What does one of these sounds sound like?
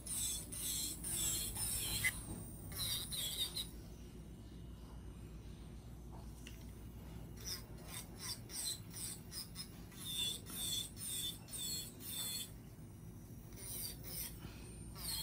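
A small electric nail drill whines and grinds in short, uneven bursts, close by.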